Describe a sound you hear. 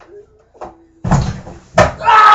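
A young man lands hard with a heavy thud on a bed.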